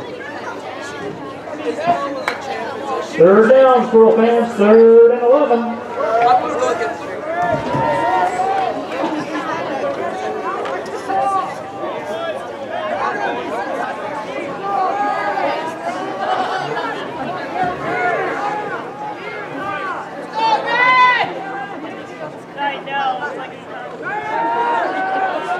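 Many young men and boys shout and call out across an open field.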